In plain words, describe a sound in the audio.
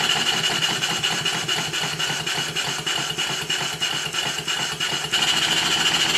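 A small steam engine slows into separate puffs, then speeds up again.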